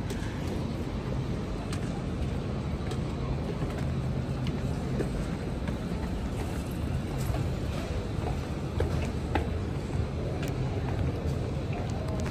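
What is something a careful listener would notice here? Footsteps tread down concrete stairs.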